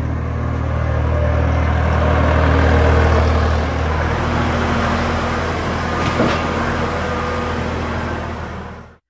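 A diesel loader engine rumbles steadily nearby.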